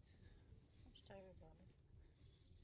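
A young woman speaks briefly and quietly into a close microphone.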